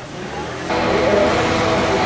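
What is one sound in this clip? A woman speaks with animation to a crowd.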